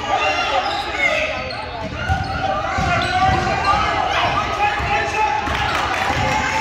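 Spectators and players call out and chatter around an echoing gym.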